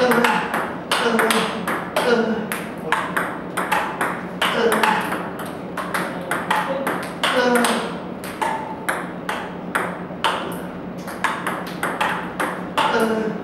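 A table tennis paddle hits a ball sharply, again and again in a quick rhythm.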